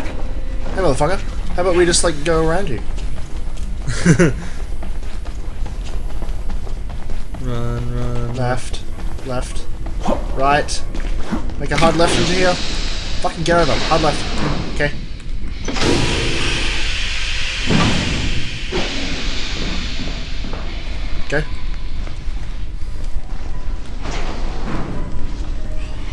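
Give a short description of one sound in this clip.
Young men talk and react with animation, close to a microphone.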